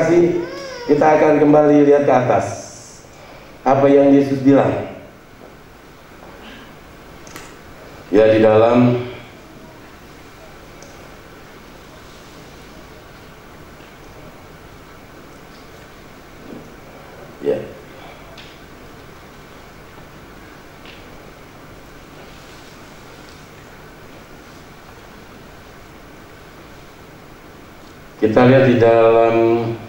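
A man speaks calmly through a microphone in a large echoing hall, with long pauses.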